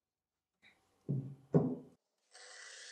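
A metal block thuds as a gloved hand sets it on a wooden bench.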